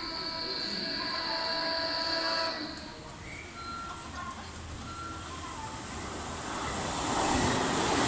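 A train approaches and rumbles closer, growing louder.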